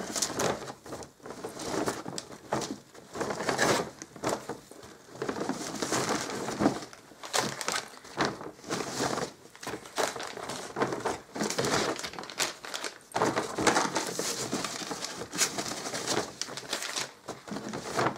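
Plastic wrapping rustles and crinkles.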